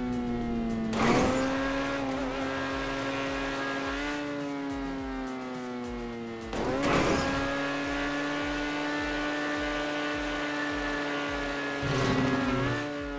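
Car tyres thud hard on landing.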